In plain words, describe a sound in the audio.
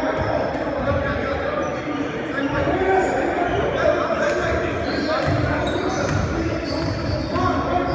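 Men shout and call out to one another across the echoing hall.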